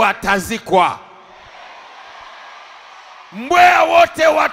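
A crowd cheers and shouts in response.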